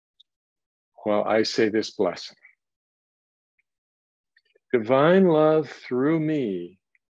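A middle-aged man speaks calmly and close to a microphone, in short phrases with pauses.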